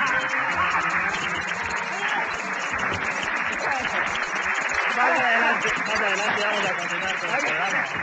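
A second man laughs loudly.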